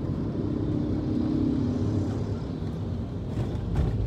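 A motorcycle engine buzzes past close by.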